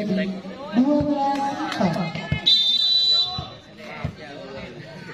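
A volleyball is struck with sharp thuds.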